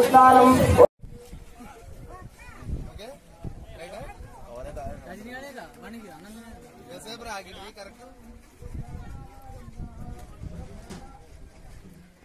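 Several men talk and murmur nearby outdoors.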